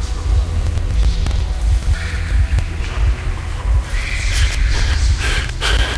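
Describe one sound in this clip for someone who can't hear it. A large beast roars.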